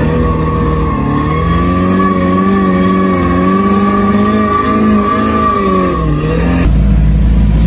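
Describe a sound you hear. A race car engine revs hard at speed.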